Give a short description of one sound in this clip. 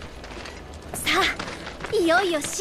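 A young woman speaks brightly and cheerfully.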